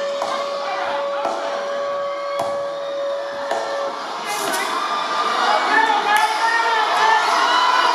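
Dance music plays loudly over speakers in an echoing room.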